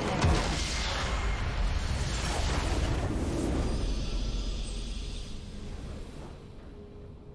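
A huge explosion booms and rumbles, then slowly dies away.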